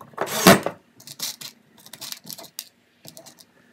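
Loose screws rattle and clink as a hand rummages through them.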